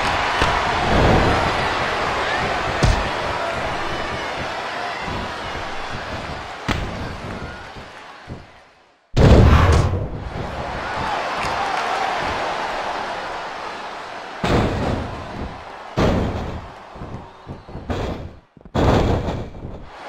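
Wrestlers' bodies thud onto the ring mat.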